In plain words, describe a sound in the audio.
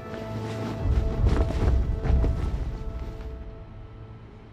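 A flag flaps in a strong wind.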